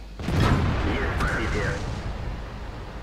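A tank cannon fires with a loud boom and fades out.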